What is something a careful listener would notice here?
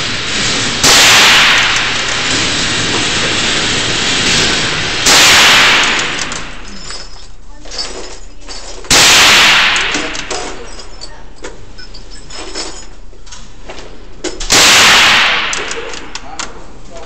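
A rifle fires loud shots that boom and echo in an enclosed space.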